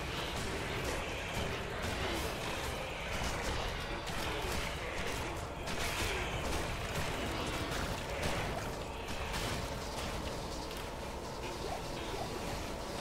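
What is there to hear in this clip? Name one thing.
Spells crackle and explode in fast, busy bursts.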